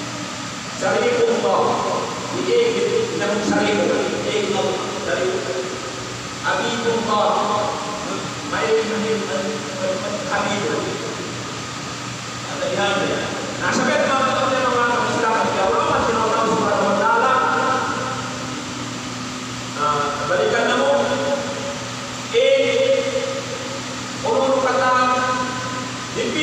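A middle-aged man speaks calmly into a microphone, heard through a loudspeaker in an echoing room.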